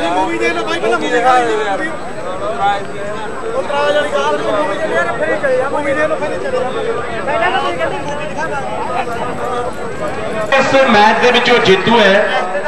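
A large outdoor crowd murmurs in the distance.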